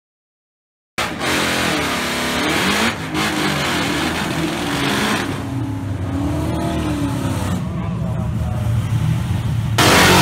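Race car engines roar and rev loudly.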